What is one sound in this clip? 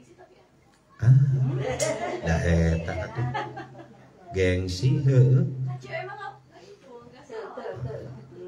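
A middle-aged man speaks calmly into a microphone, close by.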